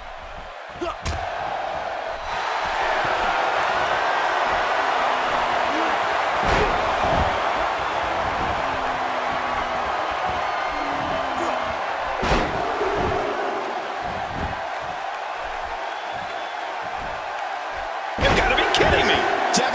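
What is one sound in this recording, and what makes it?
Bodies slam hard onto a wrestling ring mat.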